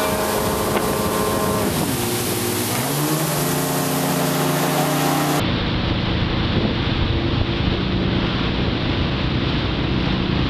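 A motorboat engine drones under way.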